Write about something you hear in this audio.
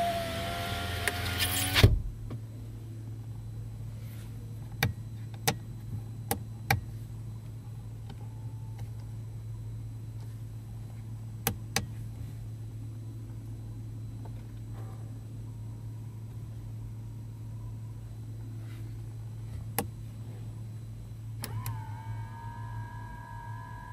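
An electric motor whirs as a side mirror folds.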